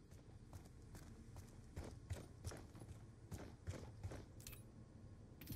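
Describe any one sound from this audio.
Footsteps thud on a metal walkway.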